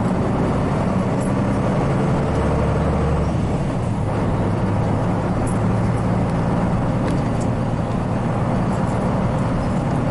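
Tyres rumble over a road beneath a bus.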